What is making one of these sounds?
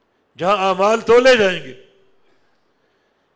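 An elderly man chants loudly into a microphone, in a large echoing hall.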